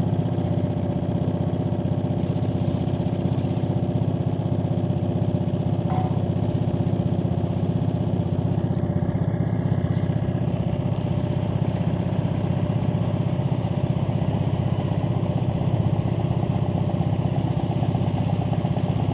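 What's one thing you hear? A small boat's motor chugs steadily and loudly close by.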